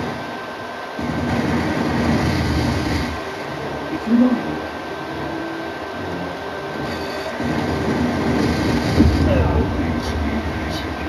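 Explosions and crashes boom from a television loudspeaker.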